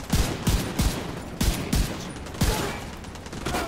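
Gunshots fire in loud, quick bursts close by.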